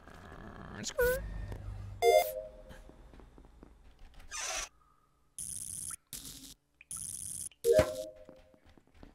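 Short electronic chimes and blips play.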